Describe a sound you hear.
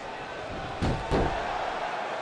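A body thuds onto a wrestling ring mat.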